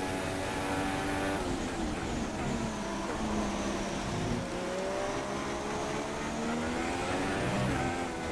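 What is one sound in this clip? A racing car engine revs high, its pitch dropping and rising through gear changes.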